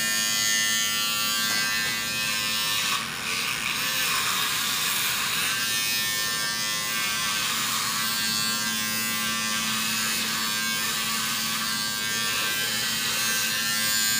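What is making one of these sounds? Electric clippers buzz steadily close by.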